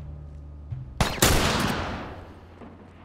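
A rifle fires a single loud shot that echoes briefly.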